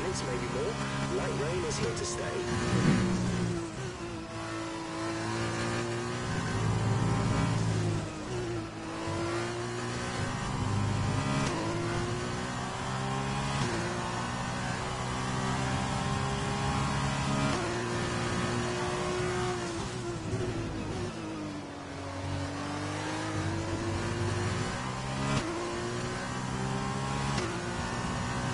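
A racing car engine screams, rising in pitch through quick gear changes and dropping under braking.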